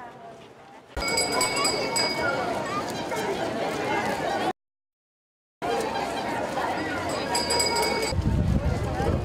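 A large crowd chatters loudly outdoors.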